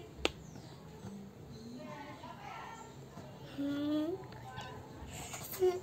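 A young girl speaks softly close by.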